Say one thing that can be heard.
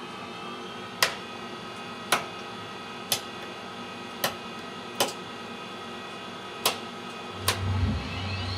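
Toggle switches click sharply, one after another.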